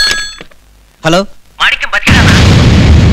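A man speaks tensely into a phone.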